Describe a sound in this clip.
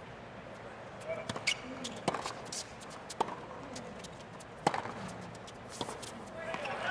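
A tennis ball is struck sharply back and forth.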